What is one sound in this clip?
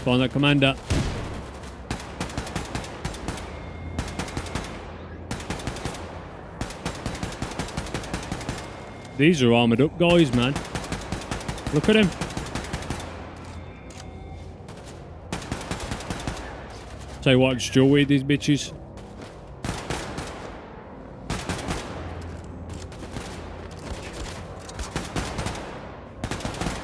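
Guns fire in rapid bursts, with sharp cracks.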